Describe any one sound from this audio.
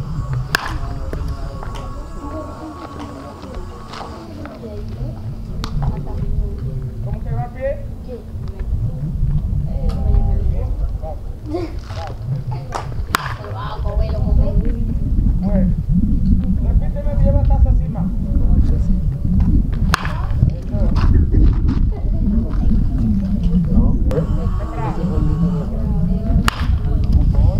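A baseball bat cracks against a pitched ball.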